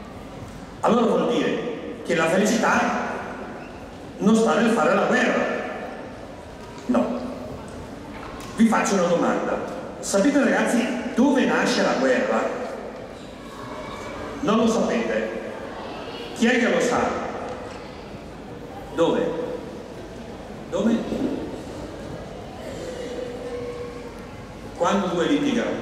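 An elderly man speaks slowly through a microphone and loudspeakers, in short phrases with pauses.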